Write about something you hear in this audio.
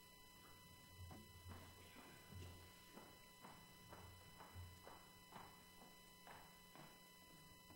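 Footsteps walk away.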